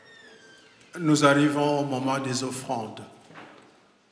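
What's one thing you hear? An elderly man sings loudly into a microphone.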